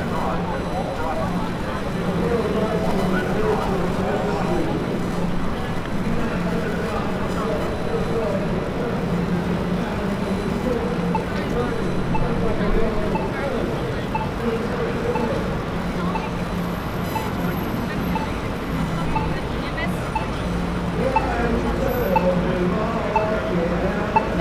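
A crowd of people murmurs and chatters outdoors.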